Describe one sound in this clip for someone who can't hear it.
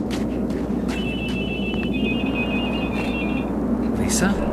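A mobile phone rings with a repeating electronic tone.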